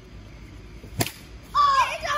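A plastic bat cracks against a ball.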